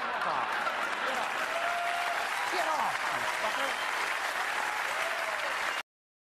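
A large audience cheers loudly in a big hall.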